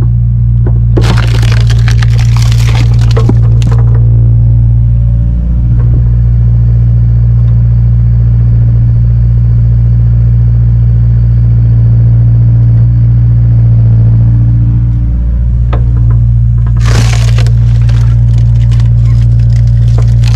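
A hydraulic engine hums loudly and steadily close by.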